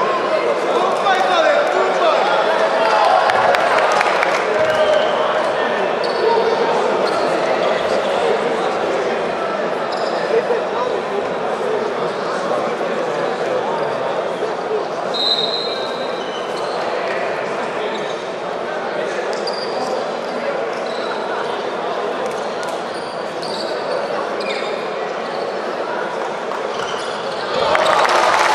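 A crowd chatters and murmurs throughout a large echoing hall.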